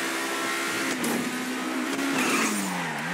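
A sports car engine revs up and then winds down.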